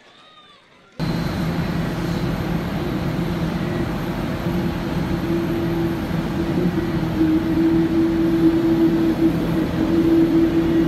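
An aircraft engine hums steadily outdoors.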